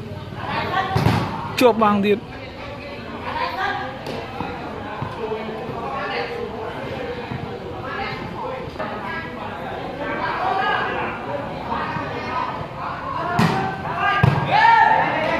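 A volleyball is struck by hand with sharp slaps.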